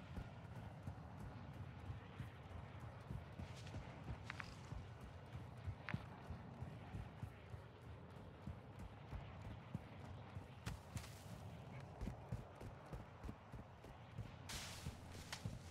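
Footsteps thud steadily on dry ground.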